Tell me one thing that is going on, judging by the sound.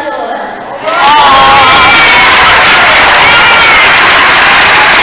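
People in an audience cheer and whoop.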